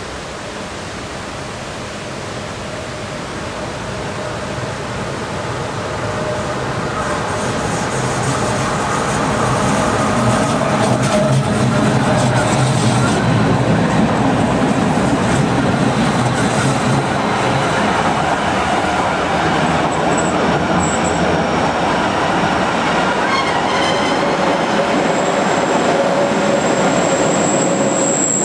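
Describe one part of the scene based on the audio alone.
A train approaches and rumbles past close by, growing louder.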